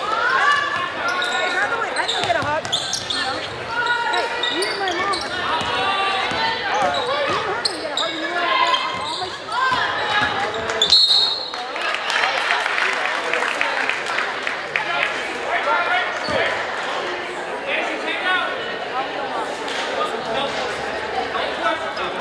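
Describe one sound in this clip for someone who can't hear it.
A crowd of spectators cheers and calls out.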